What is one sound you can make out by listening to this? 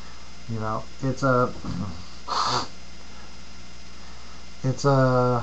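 A middle-aged man talks calmly and close by, with pauses.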